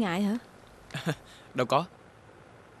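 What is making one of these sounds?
A young man speaks briefly and cheerfully close by.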